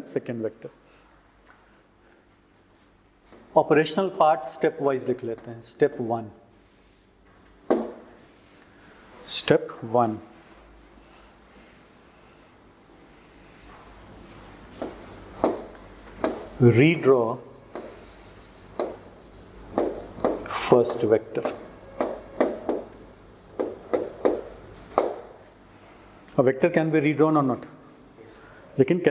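A man lectures calmly through a clip-on microphone.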